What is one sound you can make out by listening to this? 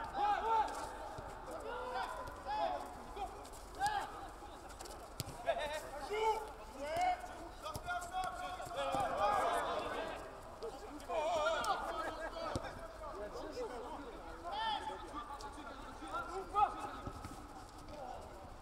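Men shout to each other outdoors across an open pitch.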